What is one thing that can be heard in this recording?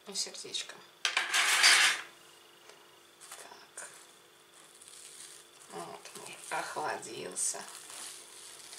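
Plastic wrap crinkles.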